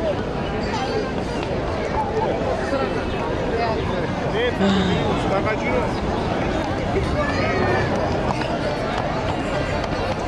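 A crowd chatters in the open air.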